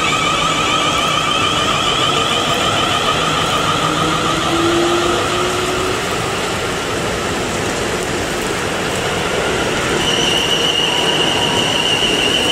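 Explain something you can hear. A train rumbles past close by on the tracks.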